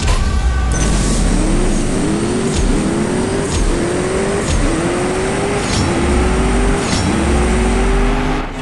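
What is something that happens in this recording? A sports car engine climbs in pitch and drops with each gear shift.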